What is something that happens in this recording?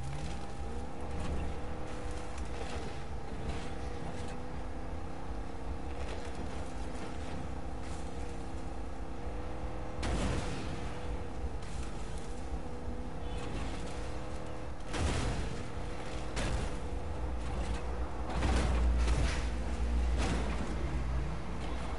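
A vehicle engine drones steadily, rising and falling in pitch.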